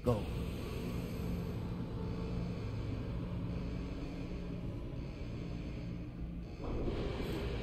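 A deep mechanical hum drones steadily.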